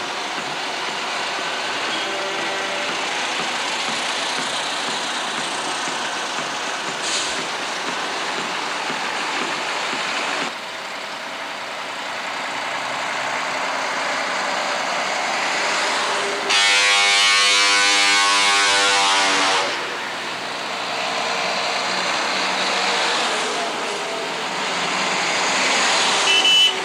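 Heavy truck engines rumble as trucks drive slowly past.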